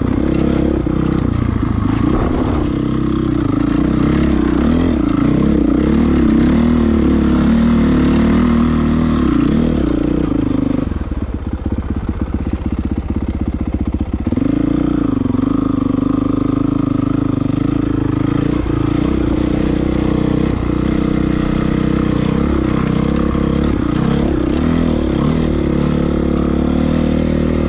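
A dirt bike engine revs and putters close by.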